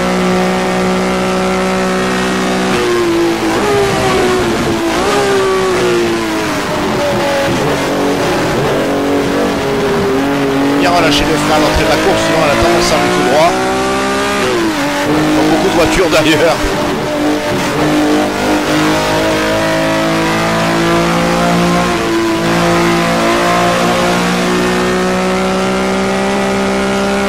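A race car engine roars steadily, its pitch rising and dropping with gear changes, heard through loudspeakers.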